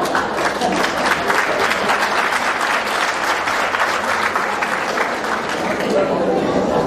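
A crowd of women murmurs and chatters.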